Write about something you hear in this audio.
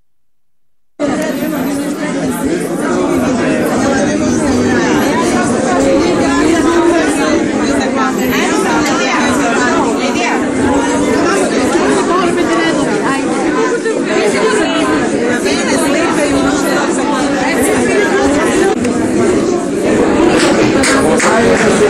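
A crowd of men and women talk loudly over one another.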